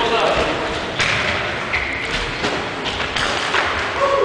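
A football is kicked in an echoing hall.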